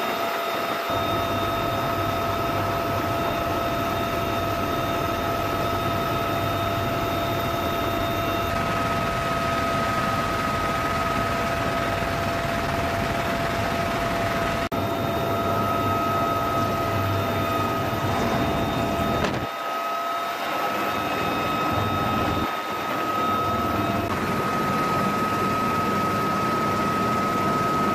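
A helicopter engine and rotor roar loudly and steadily from close by.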